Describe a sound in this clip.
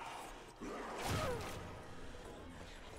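A heavy blow thuds against a body.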